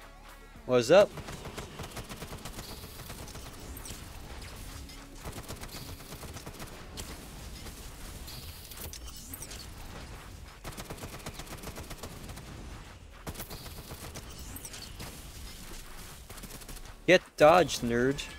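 Rapid gunfire rattles in a video game.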